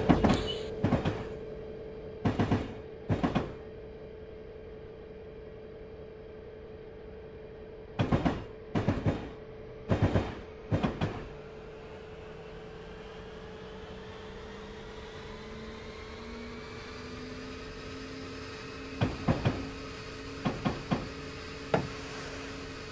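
Train wheels clatter over rail joints in quick bursts.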